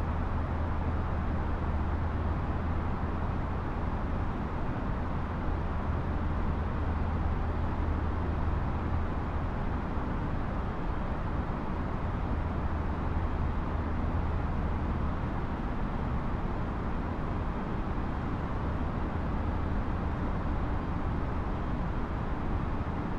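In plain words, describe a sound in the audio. Jet engines roar steadily with a low hum.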